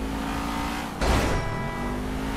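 A car crashes into another car with a loud thud.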